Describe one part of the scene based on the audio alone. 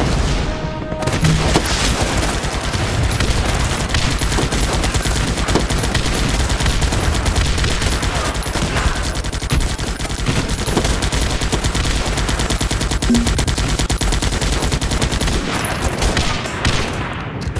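Rapid gunfire rattles without a break.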